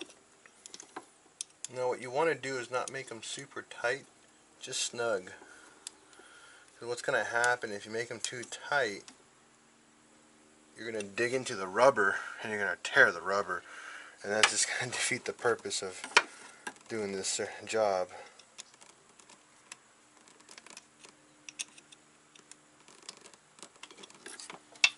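Metal tools click and scrape against engine parts.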